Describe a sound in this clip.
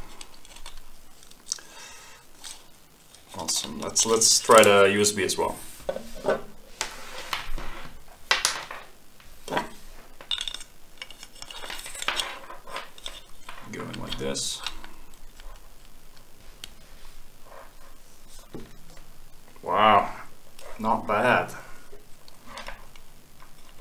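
Plastic parts click and rattle as hands handle them.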